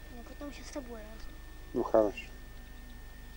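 A young boy speaks briefly nearby.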